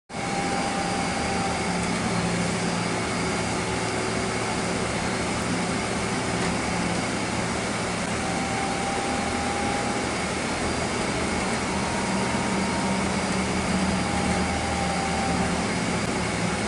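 A vehicle engine hums steadily while driving.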